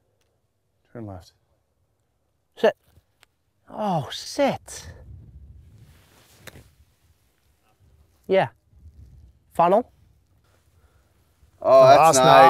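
A man calls out with animation nearby.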